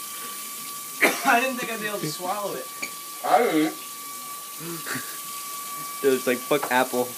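Young men laugh nearby.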